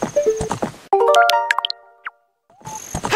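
A short electronic menu chime plays.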